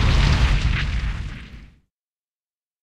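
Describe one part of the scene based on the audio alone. A tank engine rumbles and then fades away.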